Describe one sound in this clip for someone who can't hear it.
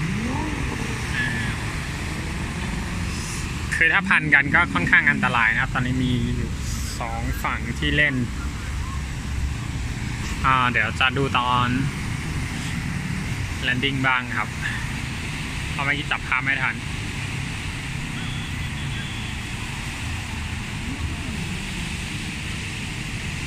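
Small waves wash onto a sandy beach.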